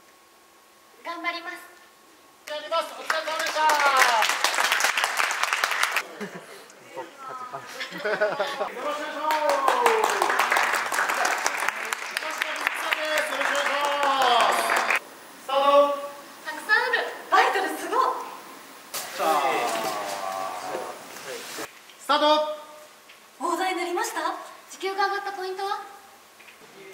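A young woman speaks brightly and close by.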